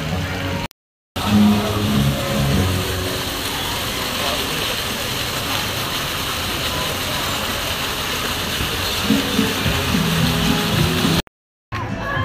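Fountain jets splash steadily into a pool.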